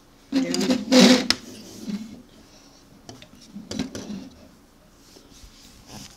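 Plastic toy bricks clatter and click as they are handled up close.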